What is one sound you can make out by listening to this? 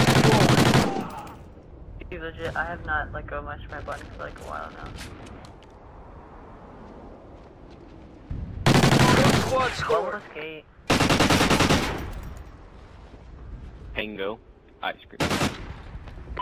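Rapid gunfire bursts out loudly in short volleys.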